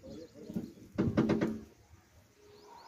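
A metal truck tailgate clanks and bangs as it swings down.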